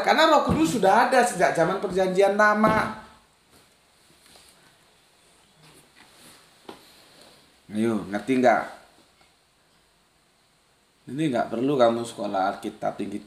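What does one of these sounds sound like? A middle-aged man speaks calmly and with animation close to a microphone.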